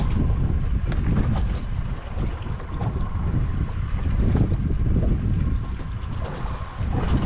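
Wind buffets outdoors, rumbling steadily.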